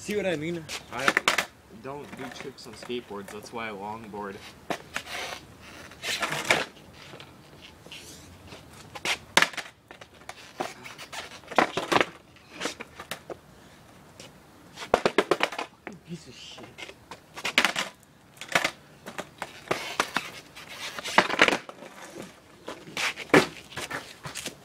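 A skateboard deck snaps and slaps down hard on concrete.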